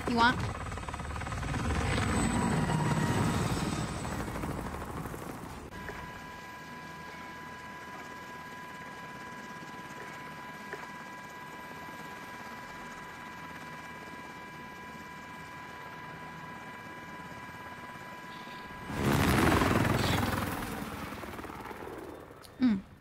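A helicopter engine roars loudly.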